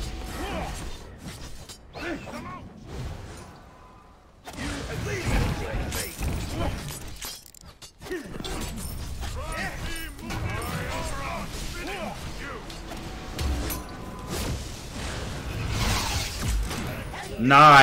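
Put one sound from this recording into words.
Game combat sounds clash and whoosh.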